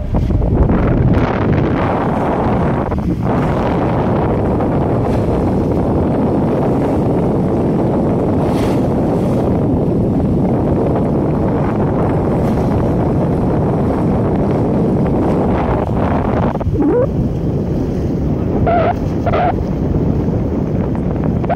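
Wind roars steadily outdoors.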